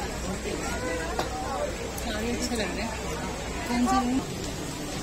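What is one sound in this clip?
A busy crowd of men and women chatters all around.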